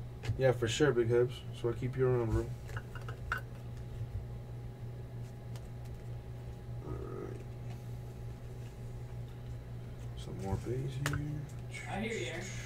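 Trading cards rustle and flick as hands sort through them.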